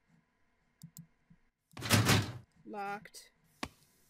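A locked door handle rattles.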